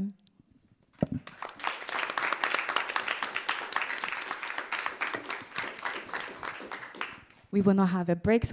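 A group of people applaud in a large echoing room.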